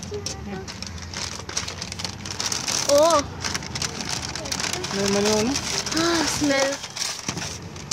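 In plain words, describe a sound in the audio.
A paper bag rustles and crinkles close by.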